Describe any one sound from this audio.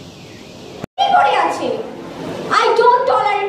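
A young woman speaks with animation through a microphone and loudspeakers.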